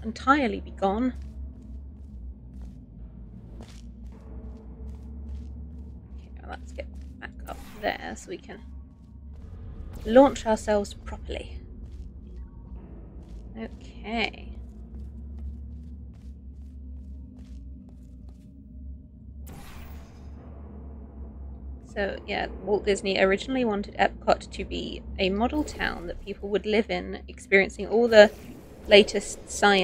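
A woman talks with animation into a microphone, close by.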